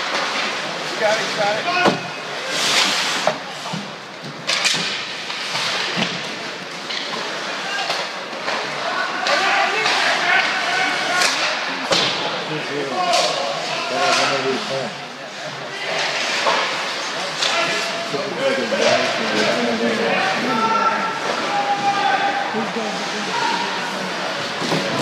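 Players shout and call out across a large echoing rink.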